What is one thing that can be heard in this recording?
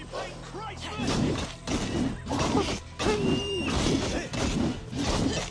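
A sword whooshes and strikes in a fight.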